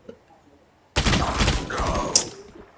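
An automatic rifle fires rapid shots.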